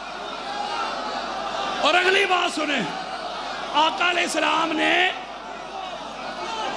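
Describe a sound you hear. A crowd of men chants and cries out together.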